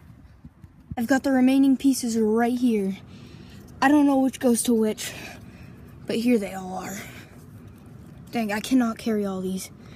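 A boy talks close to the microphone.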